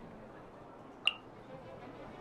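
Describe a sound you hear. A short chime rings as a card is marked.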